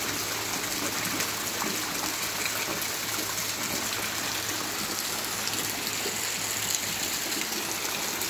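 Water streams from a roof gutter and splashes into a basin of water.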